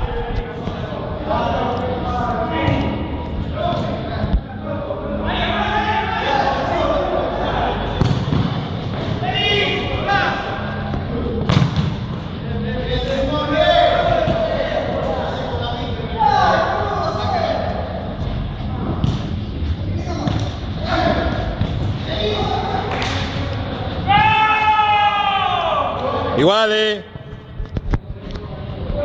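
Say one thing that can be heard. A ball is kicked with dull thuds.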